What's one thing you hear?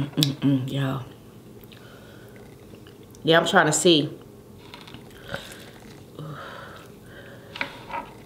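Wet food squelches as fingers pull it from a sauce.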